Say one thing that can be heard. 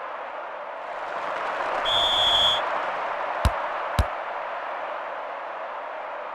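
A stadium crowd roars and swells, then settles.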